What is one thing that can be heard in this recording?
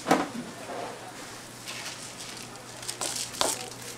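Rice grains pour and patter into a plastic basket.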